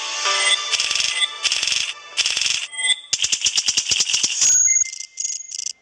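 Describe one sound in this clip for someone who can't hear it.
Rapid electronic ticks rattle as a game score counts up.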